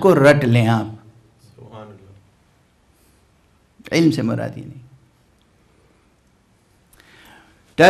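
An elderly man speaks slowly and with feeling into a close microphone, with long pauses.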